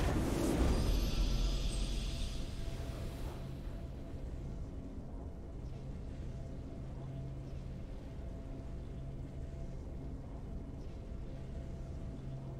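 A calm, steady victory tune plays softly.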